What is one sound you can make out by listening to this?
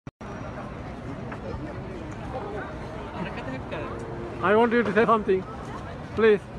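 A crowd murmurs and talks in the background.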